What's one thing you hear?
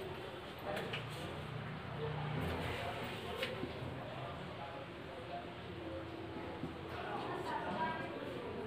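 A marker squeaks on a whiteboard.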